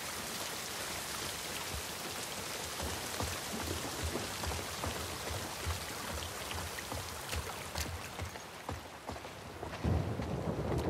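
Rain hisses steadily outdoors.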